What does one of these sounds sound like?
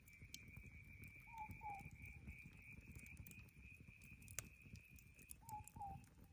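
A campfire crackles and pops steadily.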